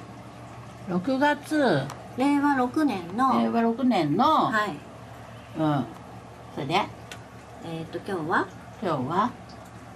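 A middle-aged woman answers slowly and hesitantly, close by.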